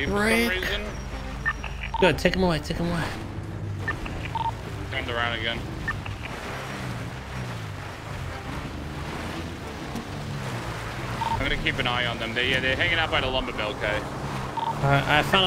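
A car engine drones and revs while driving over rough ground.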